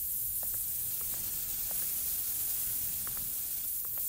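Steam hisses steadily.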